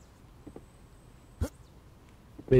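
A blade swishes in a quick strike.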